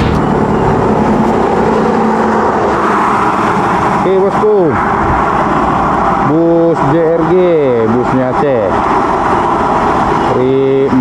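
Heavy trucks and buses rumble along a road.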